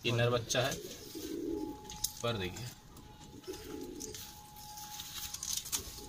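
A pigeon's wing feathers rustle softly.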